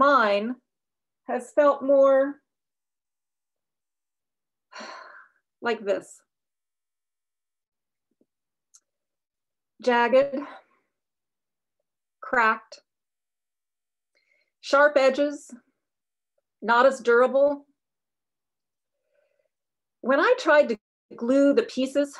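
An older woman speaks calmly and clearly into a close microphone, in short phrases with pauses.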